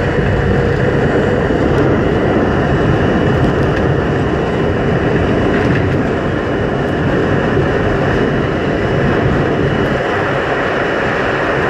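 A subway train rumbles loudly through a tunnel at speed.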